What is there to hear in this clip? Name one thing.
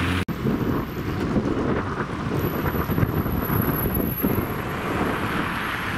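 A trolleybus hums as it pulls away.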